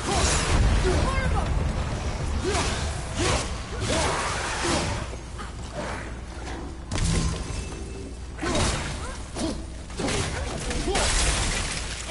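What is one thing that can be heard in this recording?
Heavy blows and bursts of magic crash and boom in a fight.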